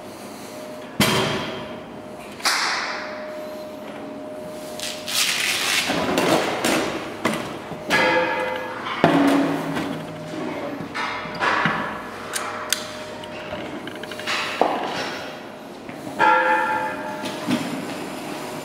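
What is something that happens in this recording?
Sheet metal clanks and rattles against a metal frame.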